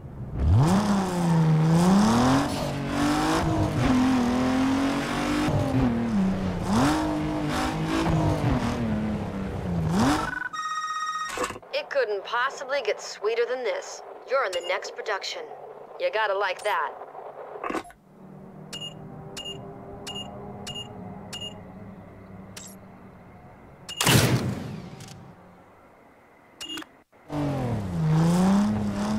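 A car engine revs hard, rising and falling in pitch as gears shift.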